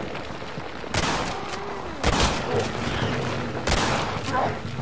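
Gunshots fire loudly at close range.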